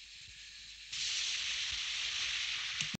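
Gas hisses steadily from a hose nozzle.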